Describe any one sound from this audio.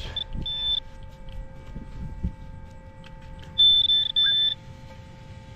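A metal detector gives high beeps.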